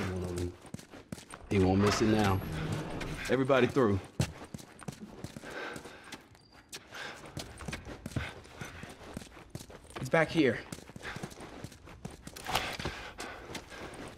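Footsteps tread across a hard floor.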